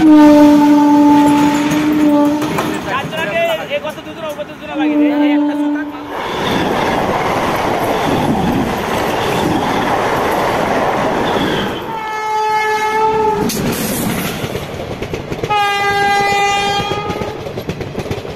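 A train horn blares loudly several times.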